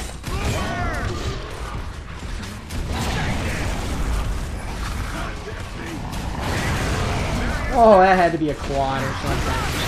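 Explosions boom and roar loudly.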